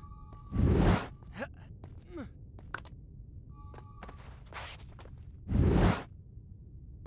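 Heavy thuds sound as a body lands hard.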